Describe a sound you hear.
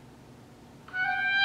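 An oboe plays a clear sustained note.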